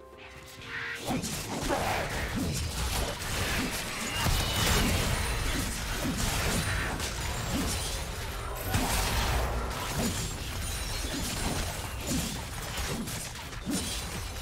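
Game weapons clash and spells burst again and again in a fast fight.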